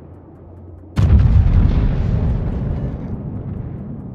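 Heavy naval guns fire a loud booming salvo that rumbles away.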